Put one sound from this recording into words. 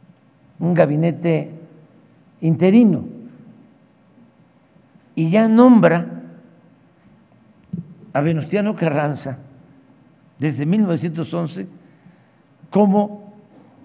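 An elderly man speaks slowly and calmly into a microphone, with pauses between phrases.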